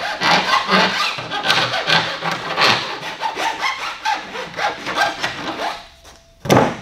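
A file rasps quickly against a plastic pipe.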